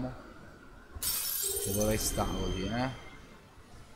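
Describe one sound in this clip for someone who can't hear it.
A magical shimmer swells and rings out briefly.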